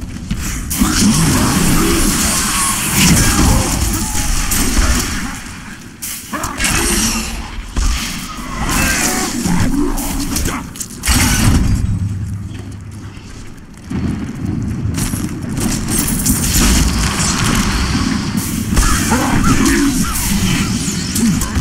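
Magic spells crackle and blast in a fight.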